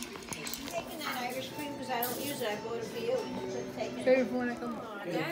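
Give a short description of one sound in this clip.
People chatter around a table.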